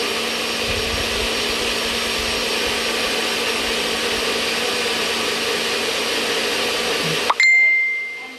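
A blender whirs loudly and steadily, then stops abruptly.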